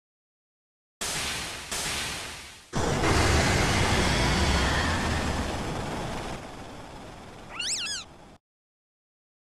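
A loud magical blast roars and rumbles, then fades.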